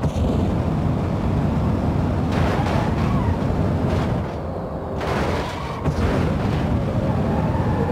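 Metal crunches and scrapes as vehicles collide.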